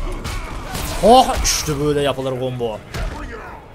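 A young man speaks with animation into a headset microphone, close by.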